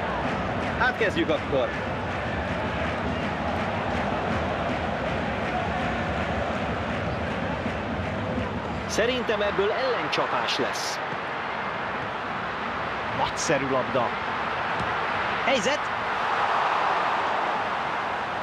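A large stadium crowd roars steadily, swelling near the end.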